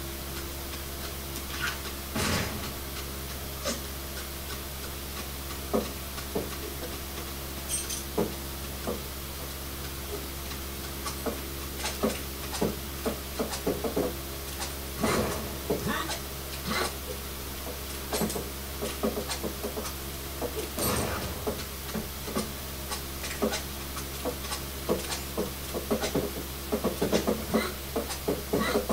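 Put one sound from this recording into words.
Video game sound effects of clattering, bangs and breaking objects play from a television.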